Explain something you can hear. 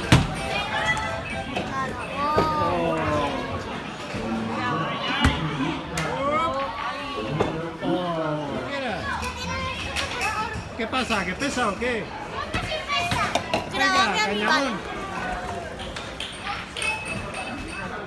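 Children talk nearby with animation.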